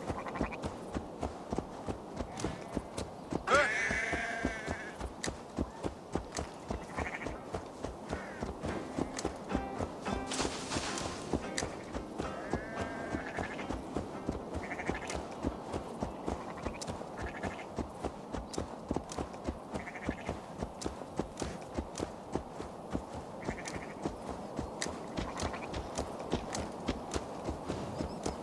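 Horse hooves thud steadily on a dirt path.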